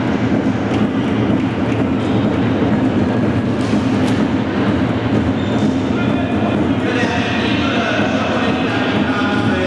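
Players' footsteps patter and squeak on a wooden floor.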